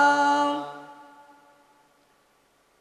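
A man sings a sustained note into a microphone.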